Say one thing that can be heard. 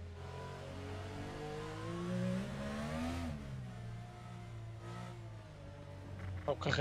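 A single-seater racing car engine accelerates, climbing in pitch and shifting up.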